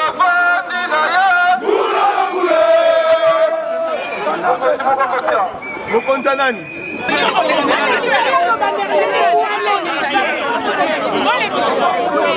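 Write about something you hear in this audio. A man speaks loudly through a megaphone.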